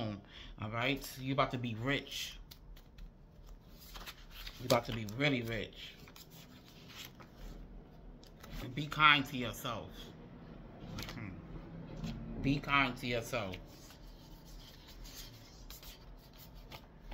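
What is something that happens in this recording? Paper cards rustle and flick as they are shuffled by hand.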